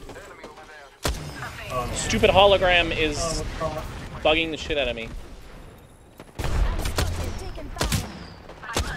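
Gunshots crack loudly in a video game.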